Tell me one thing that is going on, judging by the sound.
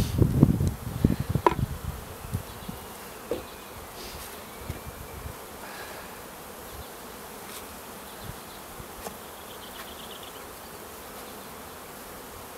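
Wooden hive boxes knock and scrape as they are lifted and set down.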